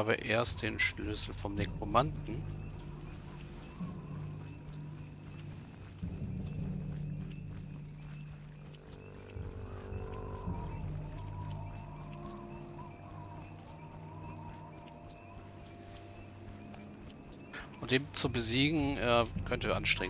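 Footsteps crunch softly on dirt and grass.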